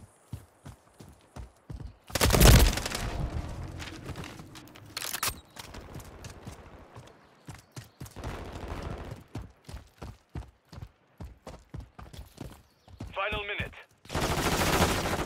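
Quick footsteps run over dirt and gravel.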